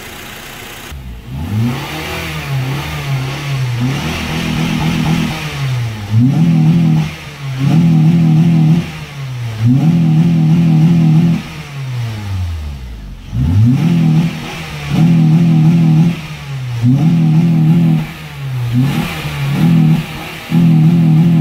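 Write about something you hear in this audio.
A car engine revs up hard again and again, then drops back.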